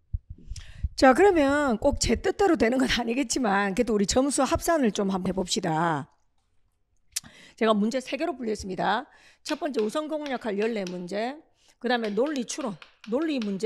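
A young woman speaks clearly into a microphone, explaining calmly.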